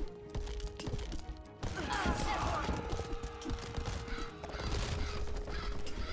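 Weapons clash in a skirmish.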